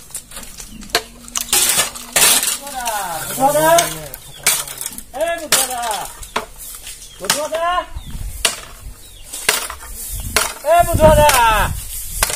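A bamboo pole knocks and rattles against wood.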